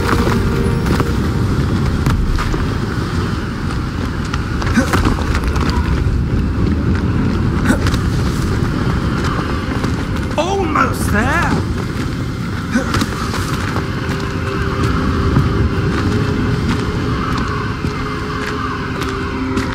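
Footsteps patter quickly over stone steps.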